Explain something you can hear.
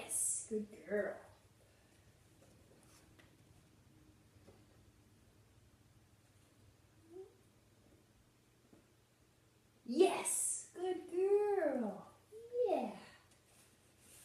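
A young woman speaks nearby in a high, playful voice.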